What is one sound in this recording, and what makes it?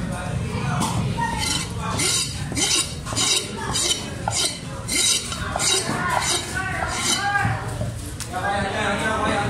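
A heavy cleaver chops sharply and repeatedly on a wooden block.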